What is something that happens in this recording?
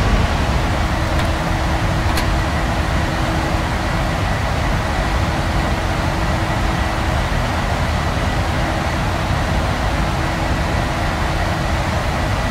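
Aircraft engines and rushing air roar steadily.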